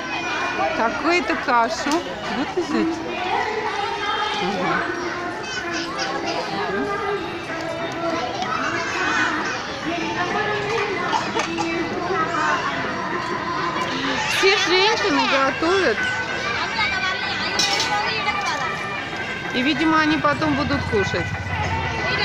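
Many women talk and call out all around, outdoors.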